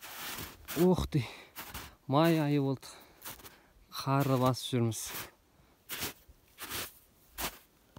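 Footsteps crunch on dry grass and gravel.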